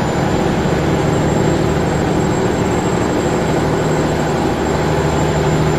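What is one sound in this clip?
Tyres roll on the road with a steady noise.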